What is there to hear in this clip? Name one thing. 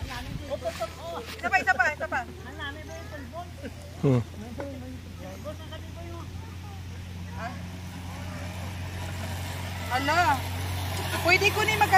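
A girl talks and laughs nearby.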